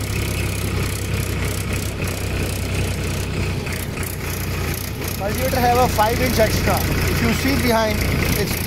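A tractor engine chugs steadily nearby.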